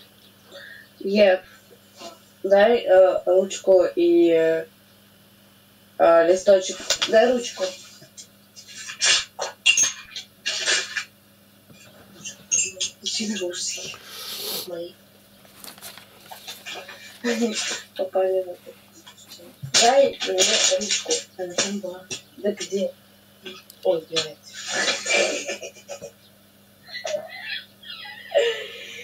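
An elderly man talks calmly over an online call.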